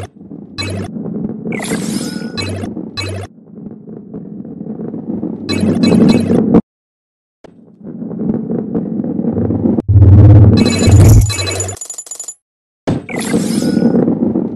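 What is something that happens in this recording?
Coins chime as they are collected.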